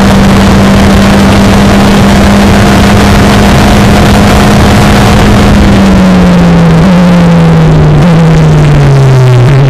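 Wind buffets past an open cockpit.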